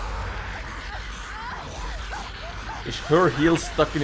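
A young woman grunts and gasps as she struggles.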